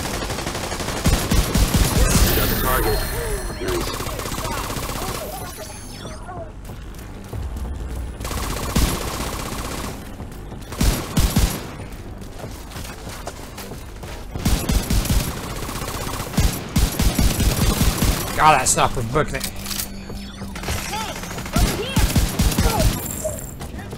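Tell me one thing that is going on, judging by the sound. Rapid gunfire bursts in short volleys.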